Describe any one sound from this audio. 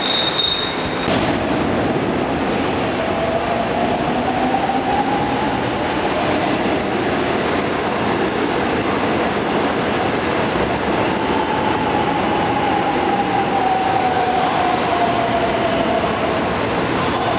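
A train approaches through a tunnel with a steady roar that echoes.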